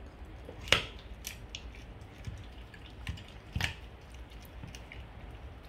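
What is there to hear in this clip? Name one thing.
A dog gnaws and crunches on a bone up close.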